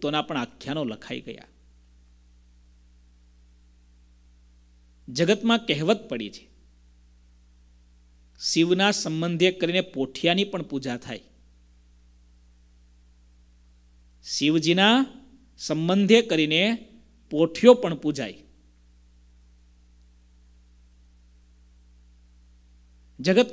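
A man speaks with animation into a microphone, in bursts with long pauses.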